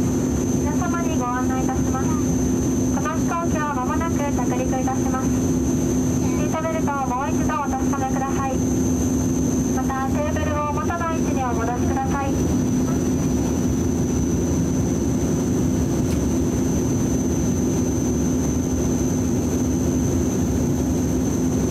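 Propeller engines drone steadily with a loud, even hum.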